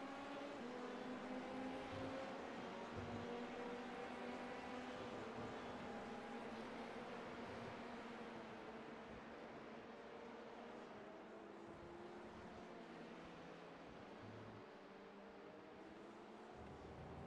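A racing car engine roars and revs up and down as the car speeds along.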